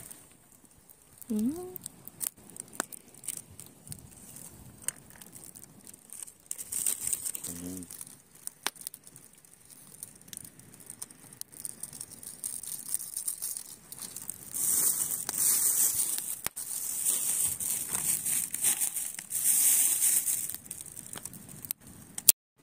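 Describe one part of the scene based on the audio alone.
Soup bubbles and simmers in a pot over a charcoal fire.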